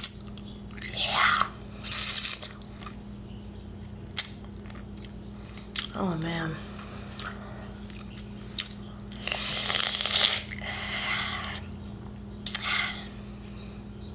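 A young woman close by makes breathy, hissing mouth sounds.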